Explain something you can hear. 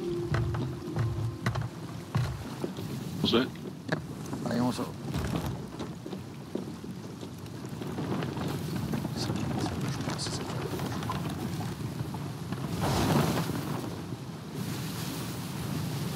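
Rough waves crash and rush against a ship's hull.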